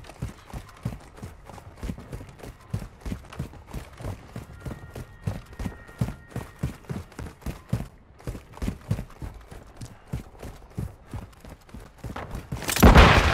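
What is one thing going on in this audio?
Quick footsteps run on hard ground.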